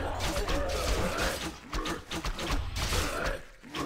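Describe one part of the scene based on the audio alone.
Swords and weapons clash rapidly in a fight.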